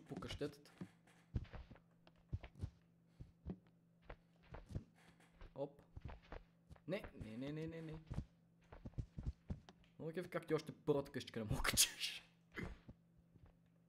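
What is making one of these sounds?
A young person talks and exclaims with animation into a close microphone.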